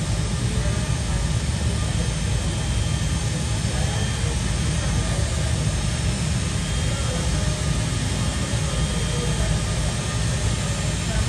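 Wind blows outdoors, buffeting loudly.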